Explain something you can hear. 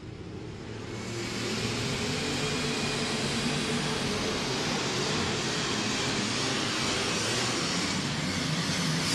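A tractor engine roars loudly at full power.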